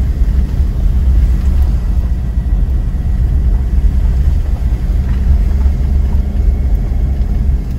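A vehicle engine rumbles low and steady as it drives.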